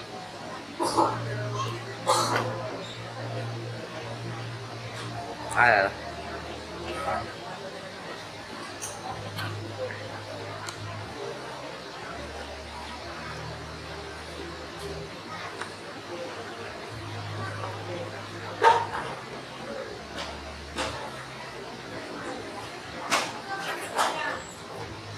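Chess pieces clack down on boards.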